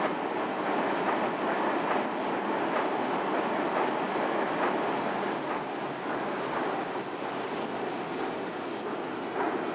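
A train rumbles past close by at speed.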